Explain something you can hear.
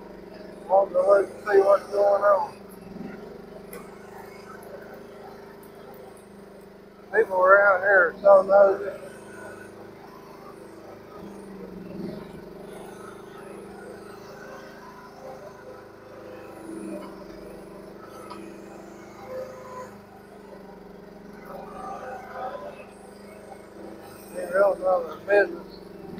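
A small excavator engine runs with a steady drone.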